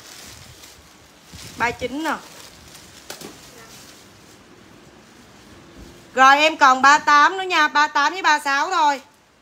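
Plastic wrapping crinkles in hands.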